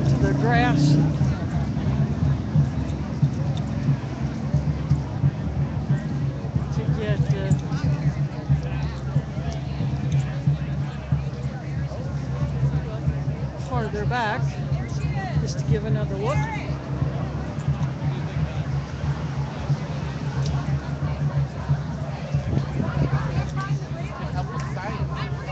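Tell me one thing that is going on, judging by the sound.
A large outdoor crowd chatters and murmurs throughout.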